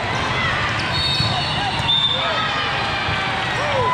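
A volleyball is struck with a slap.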